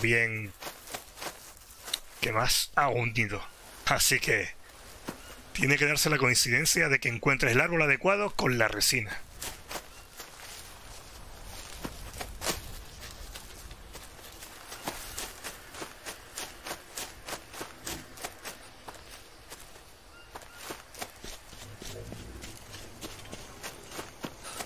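Footsteps crunch steadily through dry leaves and undergrowth.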